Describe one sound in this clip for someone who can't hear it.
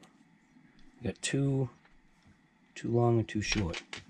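Plastic parts click and rattle as they are handled up close.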